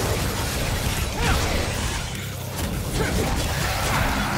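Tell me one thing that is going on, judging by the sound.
Sword blows clash and slash in a game fight.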